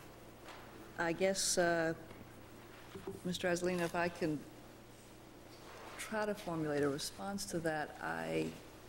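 An older woman speaks calmly into a microphone.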